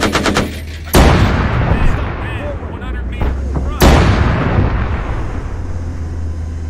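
Large explosions boom and rumble.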